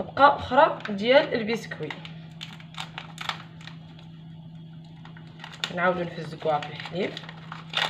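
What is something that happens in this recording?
Paper and foil wrappers crinkle as they are torn open.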